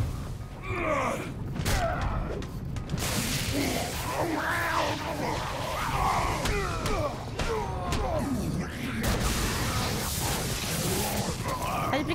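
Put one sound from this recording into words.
Punches and blows land with heavy thuds.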